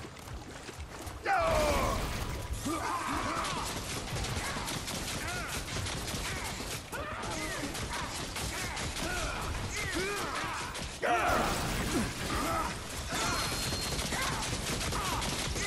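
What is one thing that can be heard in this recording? Footsteps run over stone.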